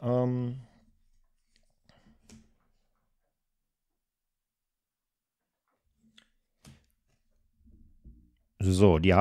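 Playing cards softly slide and tap against each other.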